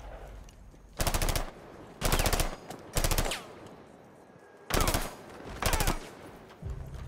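An automatic rifle fires in short bursts.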